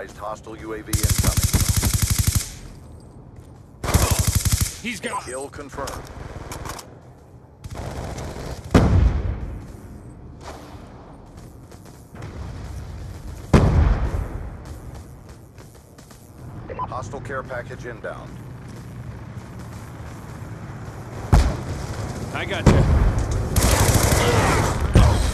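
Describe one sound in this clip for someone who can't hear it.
Rapid gunfire bursts loudly in short volleys.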